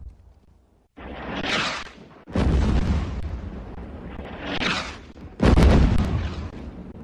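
Explosions boom one after another, echoing outdoors.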